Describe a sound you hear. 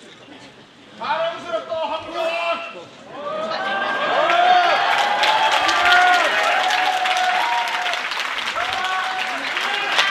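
A man speaks formally through a microphone in a large echoing hall.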